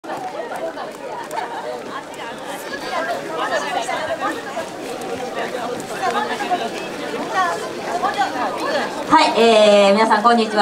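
A group of young women and men chatter and call out outdoors.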